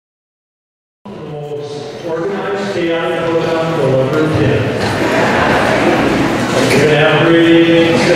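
A children's choir sings together in a large echoing hall.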